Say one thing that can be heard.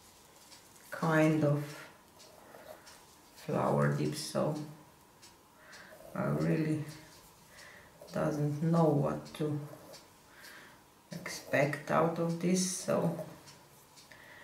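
A man talks calmly close by, in short phrases with pauses.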